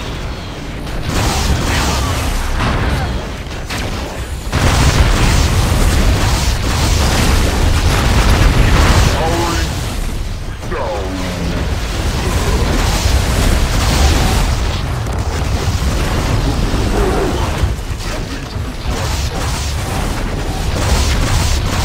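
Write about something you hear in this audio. Energy blasts crackle and whoosh.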